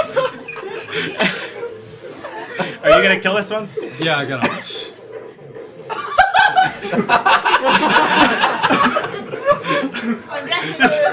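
Young men talk and laugh close to a microphone.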